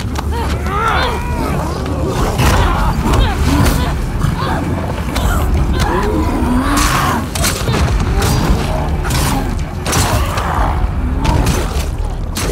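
A creature shrieks and growls loudly.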